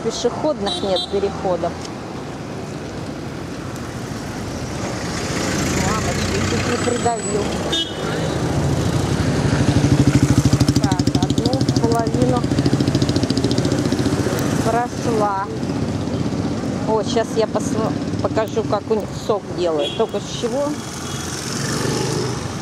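Traffic drives past on a street outdoors.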